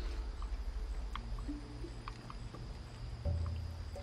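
A bowstring creaks as it is drawn taut.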